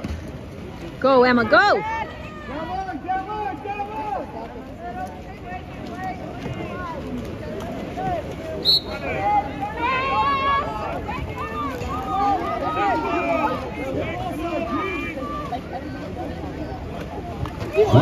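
A crowd of spectators shouts and cheers nearby, outdoors.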